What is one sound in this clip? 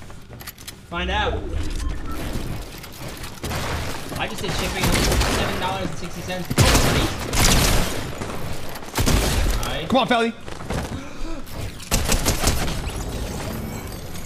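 Gunshots ring out in quick bursts.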